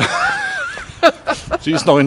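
A middle-aged man laughs close by.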